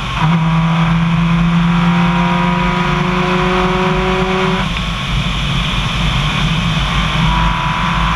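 A car engine drones steadily as the car drives along.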